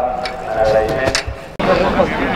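A high jumper lands with a thud onto a foam landing mat.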